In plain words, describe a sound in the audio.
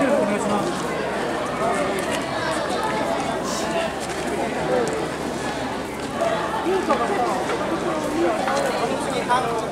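Men and women call out and talk close by.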